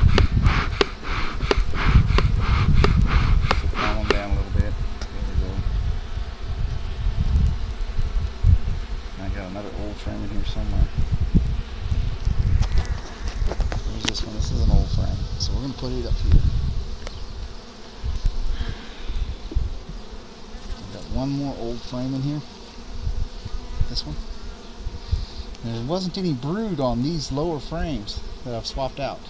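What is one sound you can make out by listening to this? Bees buzz around an open hive.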